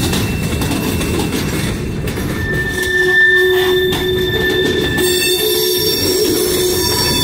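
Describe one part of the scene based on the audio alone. Freight train cars rumble and clatter past close by.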